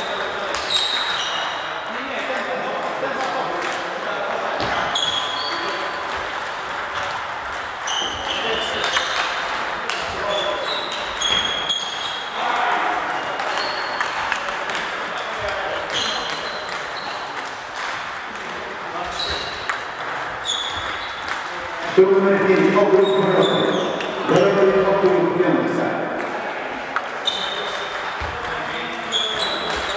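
Table tennis balls click on paddles and tables across a large echoing hall.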